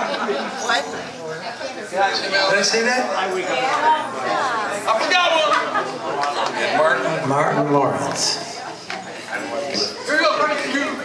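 Men and women talk loudly nearby over the music.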